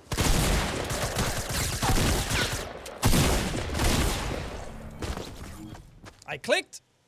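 Gunfire and explosions crackle loudly from a video game.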